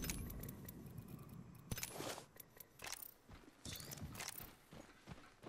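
Short electronic clicks and chimes sound as items are picked up.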